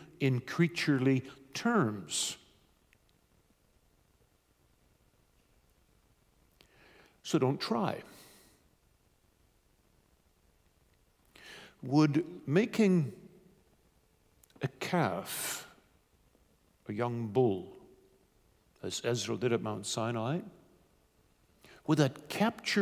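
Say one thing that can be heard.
A middle-aged man speaks with animation into a microphone, pausing often.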